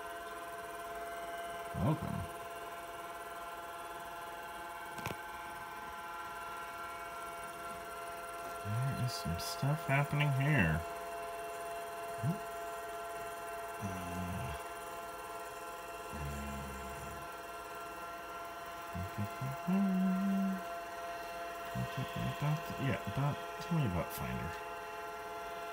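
A computer monitor hums steadily.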